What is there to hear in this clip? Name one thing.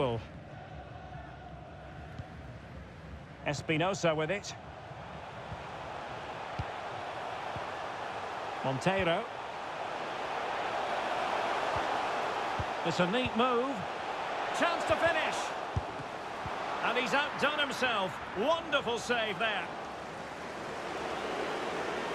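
A stadium crowd roars, swelling as an attack builds.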